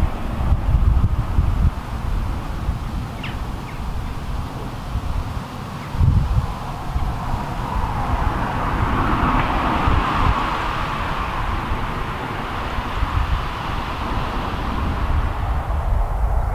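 A steam train chuffs far off across the fields, swelling and then fading.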